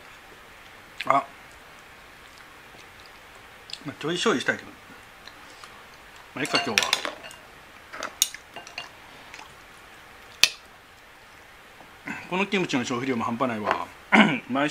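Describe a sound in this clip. A spoon clinks against a small dish.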